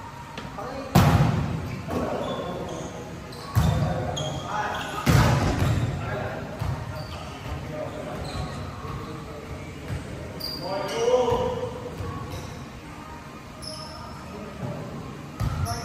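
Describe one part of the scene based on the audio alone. A volleyball is struck with sharp thumps that echo through a large hall.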